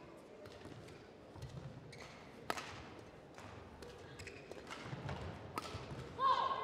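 Rackets strike a shuttlecock back and forth with sharp pops.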